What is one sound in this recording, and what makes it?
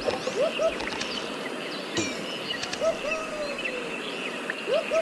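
Quick bright chiming blips ring out over and over as bananas are picked up.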